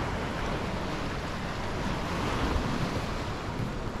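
Waves splash against rocks nearby.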